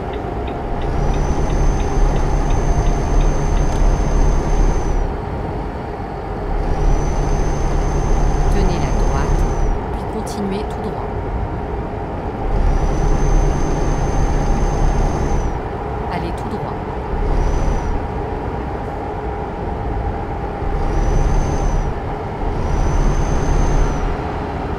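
A truck engine hums steadily while driving on a highway.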